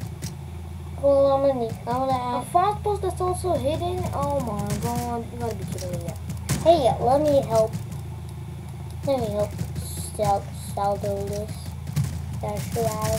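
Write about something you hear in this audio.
A young boy talks with animation, close to a microphone.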